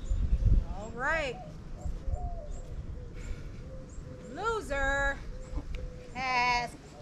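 A man calls out outdoors.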